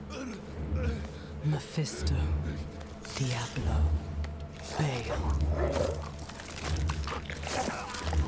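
An elderly man groans in agony.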